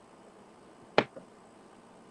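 A mug knocks down onto a table.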